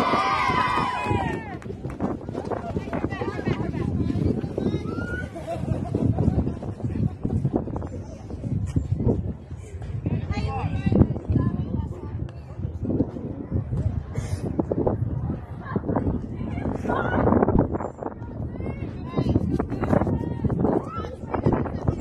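Young women chatter and call out across an open field.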